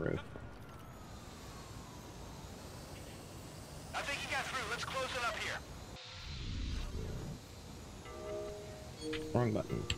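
A small drone's propellers whir.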